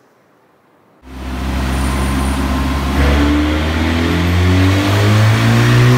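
A sports car engine roars loudly and revs up, rising in pitch.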